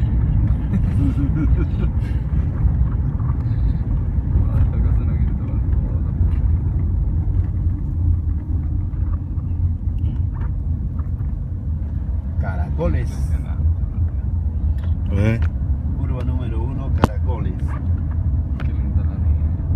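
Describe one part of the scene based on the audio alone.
A car drives along a road, its low road rumble heard from inside the car.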